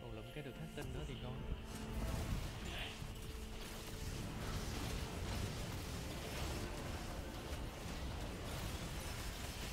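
Game battle sounds clash and blast with magic effects.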